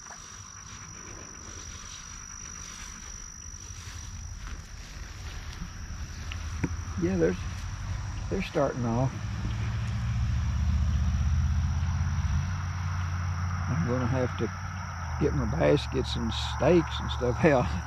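Wind blows and rumbles across the microphone outdoors, growing stronger.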